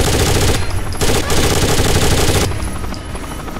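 A rifle fires rapid loud bursts.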